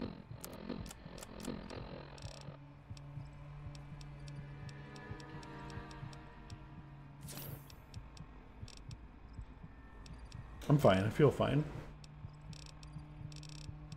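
Short electronic clicks tick quickly, one after another.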